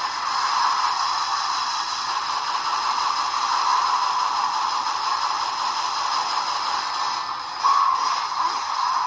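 Video game music and fight sounds play through a small handheld speaker.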